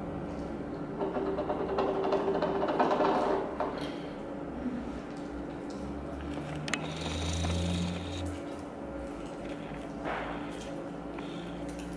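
Sticky slime squelches as a girl kneads it with her fingers.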